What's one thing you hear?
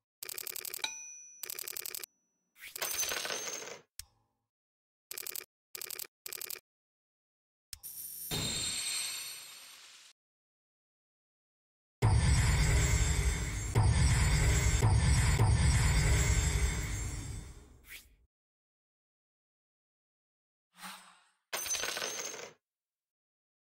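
Short electronic chimes and swooshes from a game menu play in bursts.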